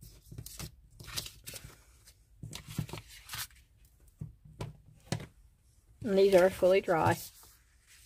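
Sheets of paper rustle as they are handled.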